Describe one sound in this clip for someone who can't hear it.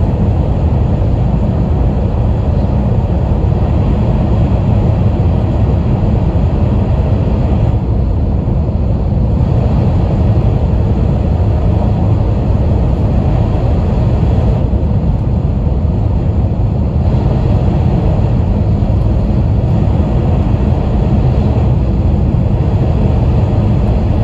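A fast train rumbles steadily along the track, heard from inside a carriage.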